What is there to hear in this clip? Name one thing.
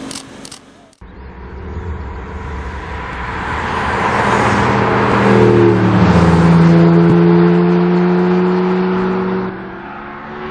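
Sports car engines roar as the cars speed past.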